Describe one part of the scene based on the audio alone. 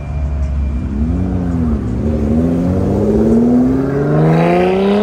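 A sports car engine revs loudly, its roar rising in pitch.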